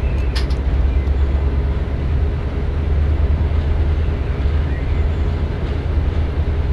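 A train engine hums with a low steady rumble.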